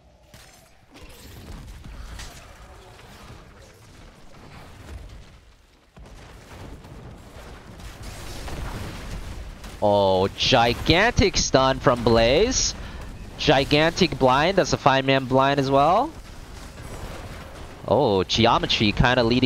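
Video game spells and attacks crackle and blast.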